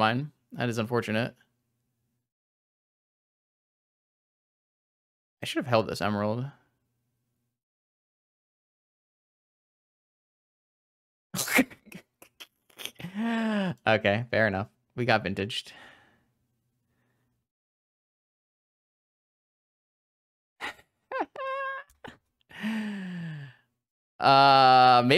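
A young man talks into a close microphone in short bursts, calmly and with animation.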